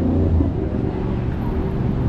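A bus engine rumbles nearby.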